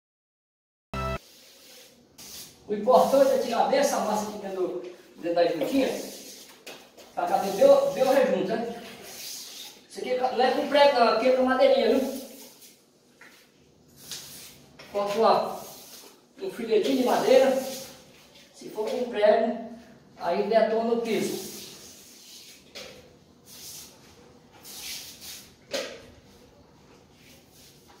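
A sponge scrubs wet floor tiles with a soft rubbing sound.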